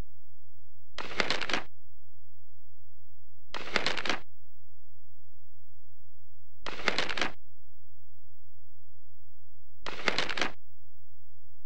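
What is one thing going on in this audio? Paper pages turn with a brisk rustling swish.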